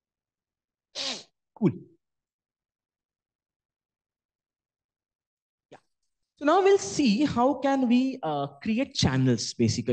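A woman speaks calmly through a microphone, with long pauses.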